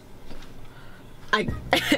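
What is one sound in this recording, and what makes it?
A young woman exclaims excitedly, close by.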